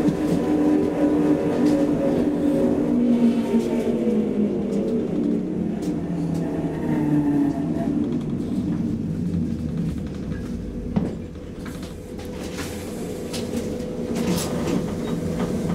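Wheels rumble and clatter on rails.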